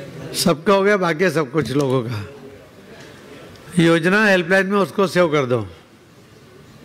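A man speaks with animation into a microphone over a loudspeaker, in a large echoing hall.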